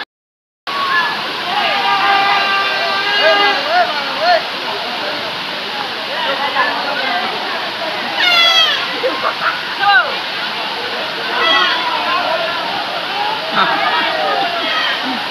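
A large outdoor crowd of men and boys talks and shouts.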